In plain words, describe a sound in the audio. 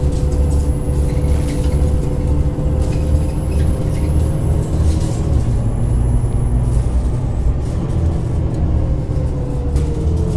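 A bus engine hums with a low, steady rumble.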